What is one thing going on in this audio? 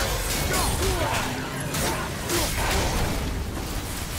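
A fiery blast bursts with a roar.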